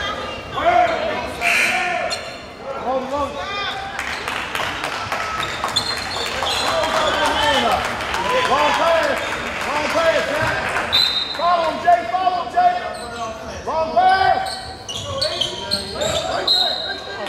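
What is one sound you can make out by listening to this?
A crowd of spectators chatters and shouts in an echoing gym.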